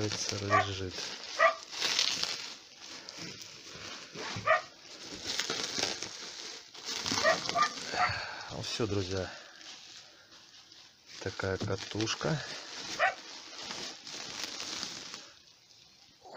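Bubble wrap rustles and crinkles as hands handle it.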